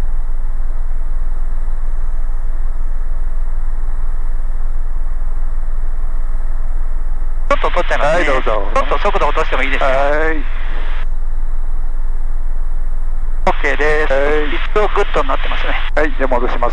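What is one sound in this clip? A helicopter's engine and rotor drone steadily and loudly.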